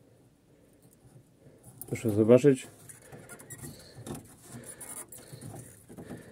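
A wooden window latch knocks and rattles.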